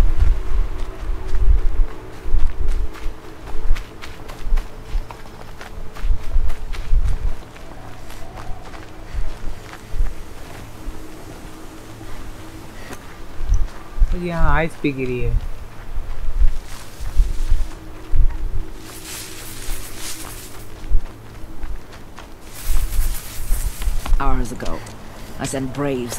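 Footsteps run quickly over grass and soft ground.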